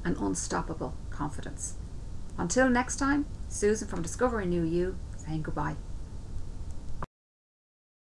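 A woman speaks warmly and with animation, close to a microphone.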